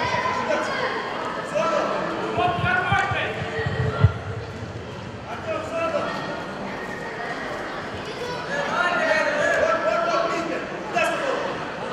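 People talk and call out in an echoing hall.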